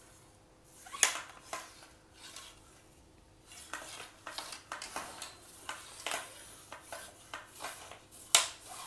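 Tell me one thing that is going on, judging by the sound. Fishing rods knock and rustle as a hand handles them.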